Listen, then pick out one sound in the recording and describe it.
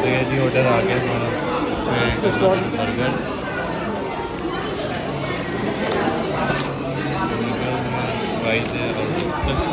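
Cardboard food boxes rustle and crinkle as they are opened by hand.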